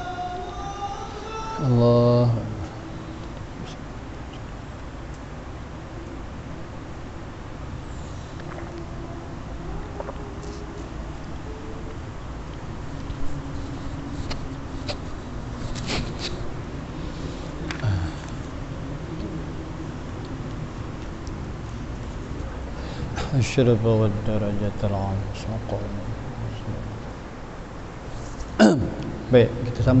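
An elderly man chants in a slow, melodic voice in an echoing room.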